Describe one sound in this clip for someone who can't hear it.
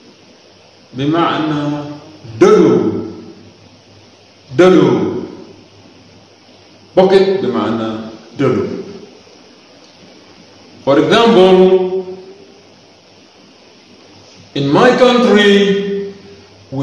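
A man speaks single words clearly into a microphone, with pauses between them.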